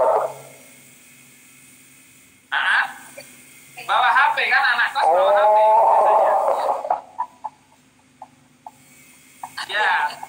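Men talk with animation over an online call.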